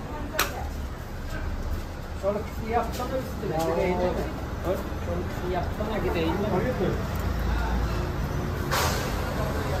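Metal tongs clink and scrape against a metal pan.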